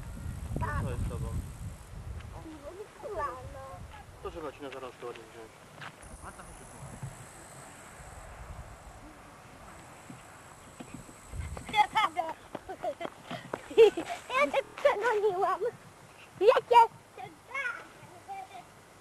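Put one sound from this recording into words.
Young children talk and call out close by, outdoors.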